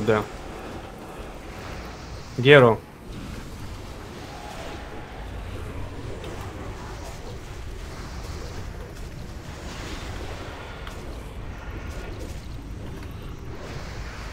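Fiery spell blasts burst and crackle.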